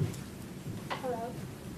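A young woman begins speaking through a microphone.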